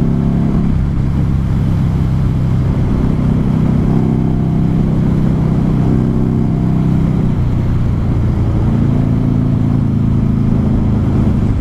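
A motorcycle engine hums steadily, its pitch shifting slightly.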